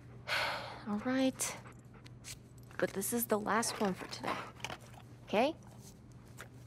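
A young woman speaks softly and gently close by.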